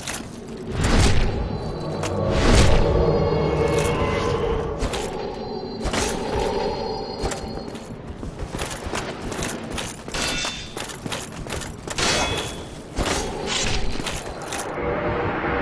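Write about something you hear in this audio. Metal weapons clang and strike in quick blows.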